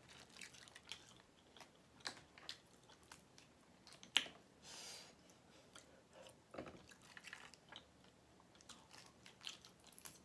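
A young woman chews and slurps loudly, close to a microphone.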